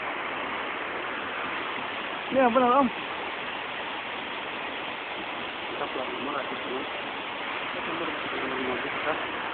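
A waterfall pours and splashes steadily nearby.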